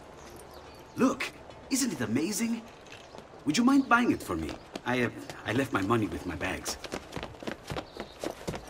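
A young man speaks with animation, heard close.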